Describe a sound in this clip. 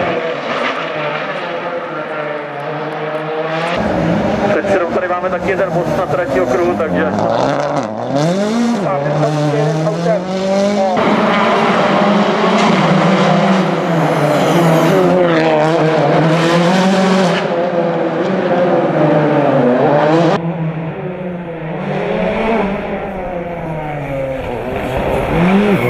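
A rally car engine revs hard and roars past close by, rising and falling in pitch.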